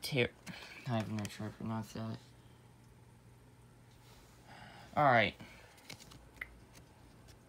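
Stiff cards rustle and slide as a hand picks them up.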